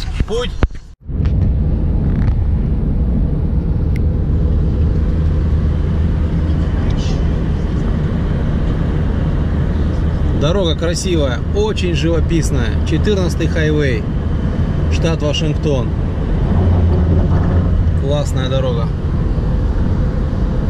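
A car's engine and tyres rumble steadily from inside while driving along a road.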